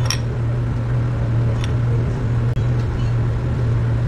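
Metal tweezers tap against a glass.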